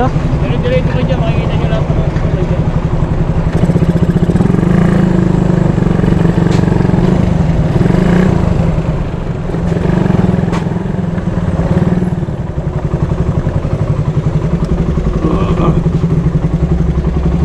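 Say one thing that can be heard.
A motorcycle engine idles close by with a steady throb.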